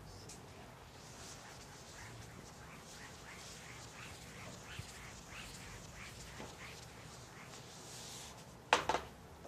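A felt eraser rubs briskly across a chalkboard in quick strokes.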